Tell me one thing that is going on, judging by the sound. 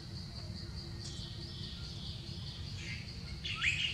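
A small monkey rustles and snaps a dry plant stem.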